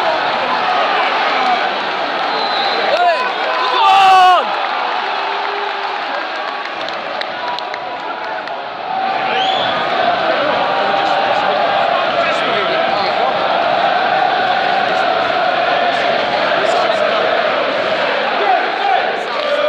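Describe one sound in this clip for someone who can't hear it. A large stadium crowd sings and chants together, echoing outdoors.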